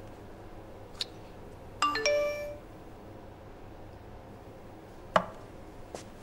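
Small bottles clink and knock as they are picked up and set down on a counter.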